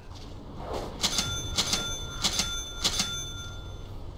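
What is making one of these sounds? Short bright chimes ring as game items are picked.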